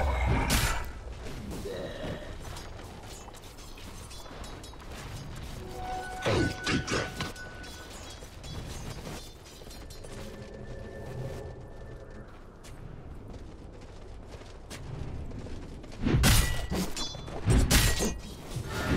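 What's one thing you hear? Magic blasts and weapon blows crash in a fast fantasy battle.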